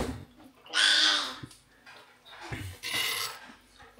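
A metal spoon clinks against a metal pot.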